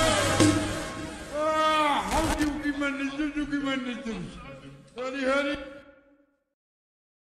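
A young woman sings close by.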